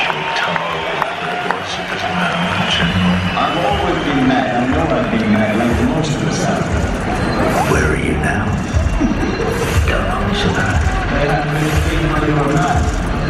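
Loud live music plays over big speakers in a large arena.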